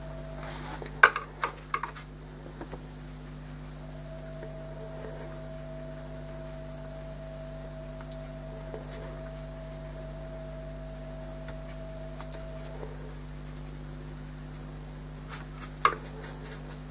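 A paintbrush clicks against a paint tray.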